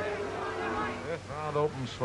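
A man speaks into a phone.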